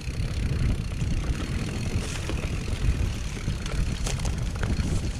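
A mountain bike's frame and chain clatter over bumps.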